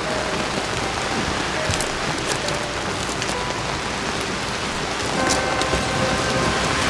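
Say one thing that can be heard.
Rain patters on an umbrella.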